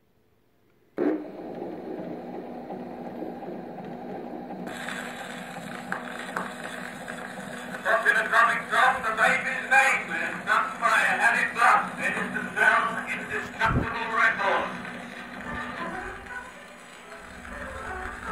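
A wax cylinder phonograph hisses and crackles as it plays.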